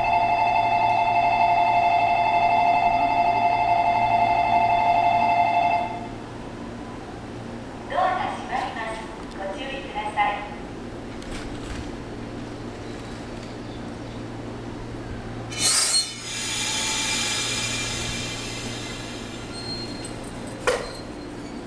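A train idles with a low steady hum.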